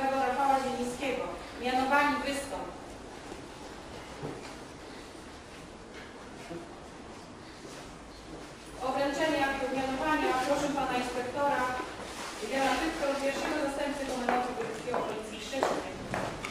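A man speaks formally in an echoing hall.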